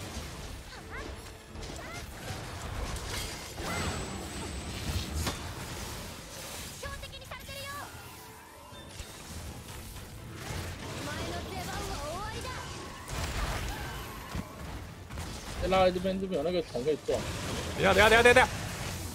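Weapons clash and strike with sharp hits.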